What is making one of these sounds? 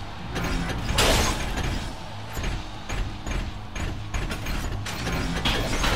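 Heavy metal robots punch each other with loud clanging impacts.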